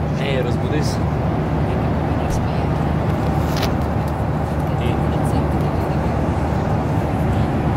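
A teenage boy talks close to a phone microphone.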